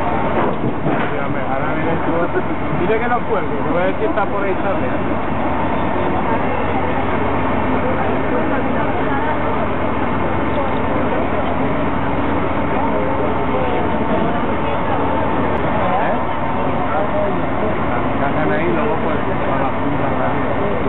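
A crane engine hums steadily.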